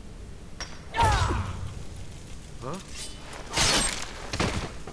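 A blade strikes with a loud, sharp slash.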